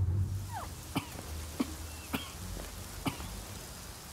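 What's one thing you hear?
Footsteps thud on dirt.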